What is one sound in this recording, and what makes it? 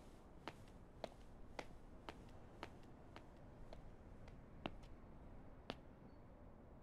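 Footsteps tap slowly on a hard floor.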